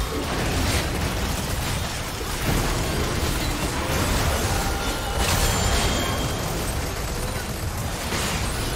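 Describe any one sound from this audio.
Video game spell blasts and hits crackle and burst rapidly.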